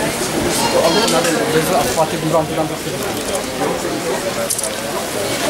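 Several people chatter outdoors in the background.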